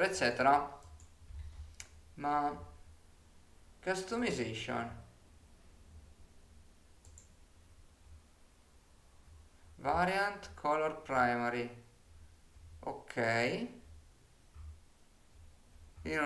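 A young man talks calmly and closely into a microphone, in short bursts with pauses.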